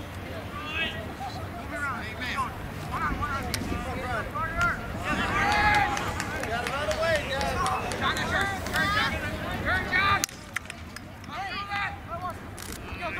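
Lacrosse sticks clack together outdoors.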